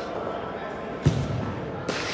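A ball is kicked with a sharp thump.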